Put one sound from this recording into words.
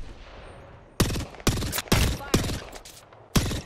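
Rapid gunshots ring out in short bursts.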